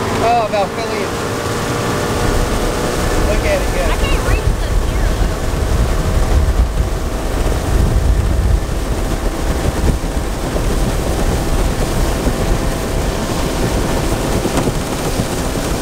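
An outboard motor drones steadily as a boat speeds along.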